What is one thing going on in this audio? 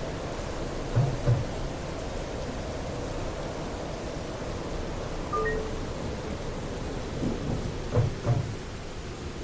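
Tram wheels clunk over track crossings.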